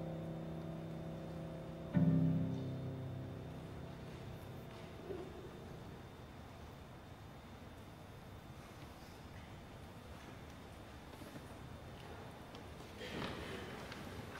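A piano plays chords.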